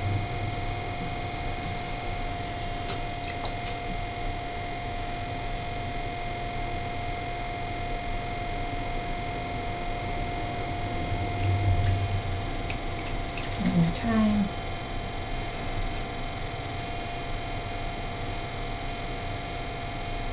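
Wet hands squelch against spinning clay.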